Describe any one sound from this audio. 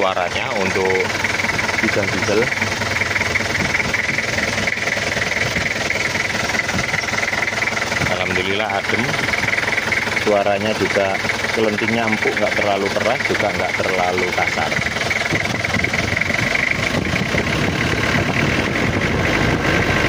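An engine idles steadily close by.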